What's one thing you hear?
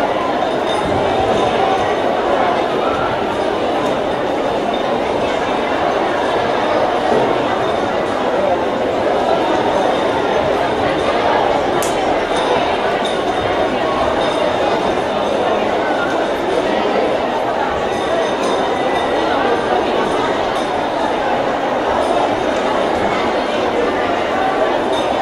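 A crowd of spectators murmurs and chatters in a large echoing hall.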